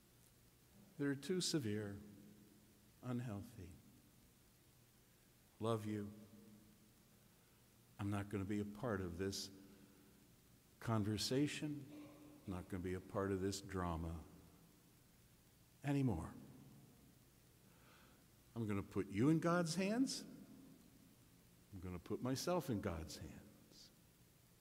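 An elderly man preaches with animation through a microphone in a large echoing hall, pausing between phrases.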